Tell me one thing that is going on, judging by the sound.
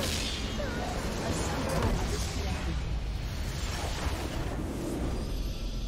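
A large explosion booms and rumbles.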